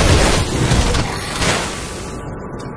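Fiery magic blasts burst and crackle loudly.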